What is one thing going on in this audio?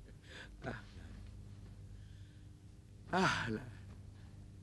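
A man greets warmly and laughs, close by.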